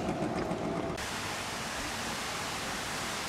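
Water splashes in a fountain.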